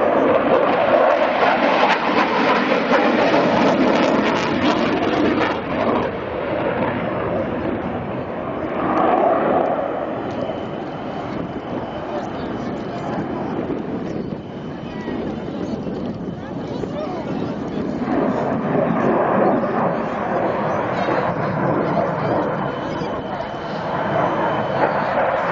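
A jet engine roars loudly overhead.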